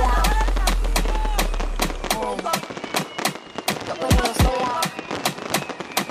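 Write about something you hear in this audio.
Burning fireworks roar and crackle.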